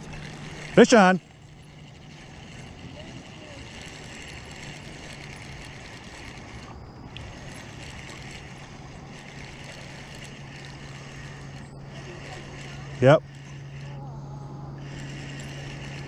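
A fishing reel whirs and clicks as its handle is cranked.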